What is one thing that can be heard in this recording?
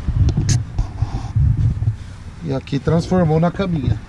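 A cushion thumps softly as it is pressed down.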